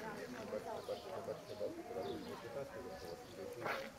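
People talk nearby outdoors.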